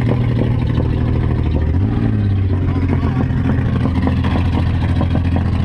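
A car engine roars loudly from inside the cabin, its pitch shifting as it revs.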